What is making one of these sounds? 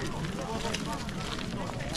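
Small wheels of a shopping trolley rattle over rough ground.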